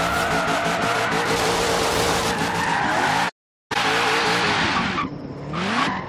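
Tyres screech loudly while drifting.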